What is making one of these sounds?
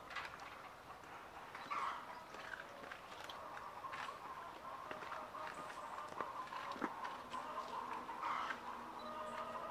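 A metal feeder lid clanks as pigs push at it.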